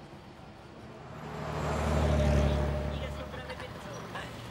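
A car drives past close by with a rising and fading rush.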